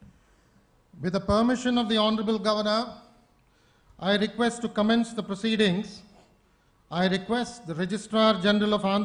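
An older man reads out slowly through a microphone.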